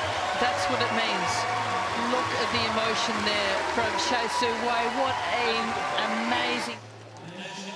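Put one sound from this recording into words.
A large crowd cheers and applauds in a big arena.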